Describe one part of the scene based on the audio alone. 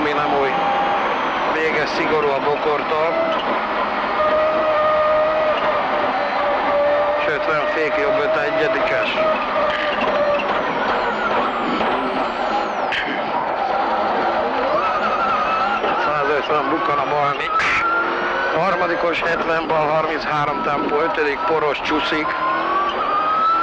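A man reads out pace notes rapidly through an intercom.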